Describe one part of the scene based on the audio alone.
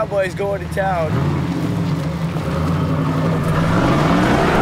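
A car engine rumbles as a car drives off.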